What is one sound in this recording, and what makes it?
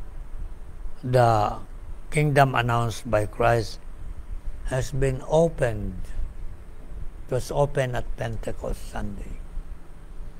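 An elderly man speaks calmly and slowly into a nearby microphone, with pauses.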